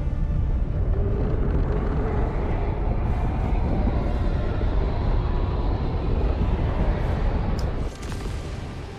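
A deep, steady rumbling roar of falling fireballs.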